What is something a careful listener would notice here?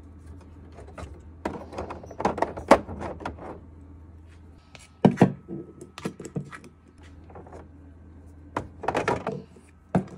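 Eggs clink and knock together as a hand moves them in a plastic drawer.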